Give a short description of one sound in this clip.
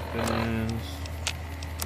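A man speaks briefly into a microphone, close by.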